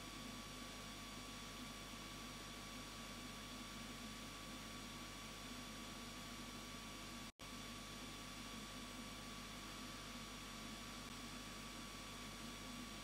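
An airbrush hisses steadily as it sprays paint.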